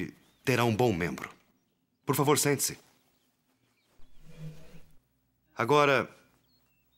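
Men speak in short, clear phrases in a quiet room.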